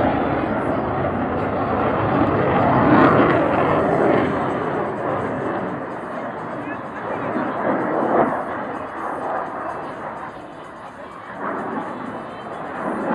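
A jet roars overhead and slowly fades into the distance.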